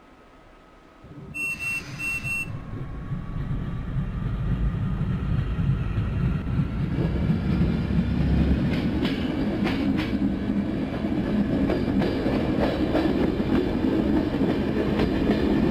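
A train rumbles as it pulls away and gathers speed.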